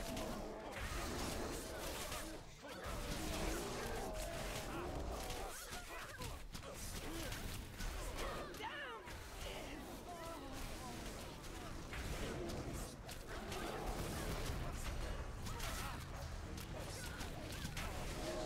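Spell effects crackle and burst as game characters fight.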